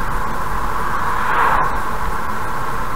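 A truck rushes past in the opposite direction with a brief whoosh.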